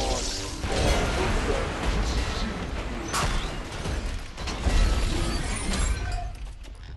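A heavy gun fires in loud bursts with booming blasts.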